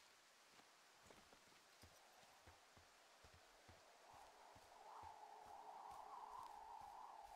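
Footsteps crunch on dry ground and grass.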